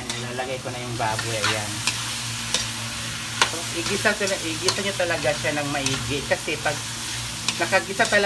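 A ladle scrapes and clinks against a metal wok.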